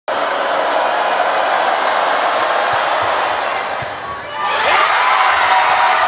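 Young women nearby cheer and shout with excitement.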